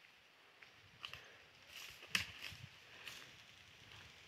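Footsteps rustle through undergrowth outdoors.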